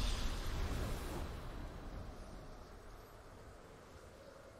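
A triumphant game fanfare booms and slowly fades.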